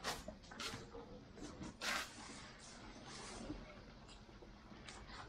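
Leafy grass rustles as it is handled.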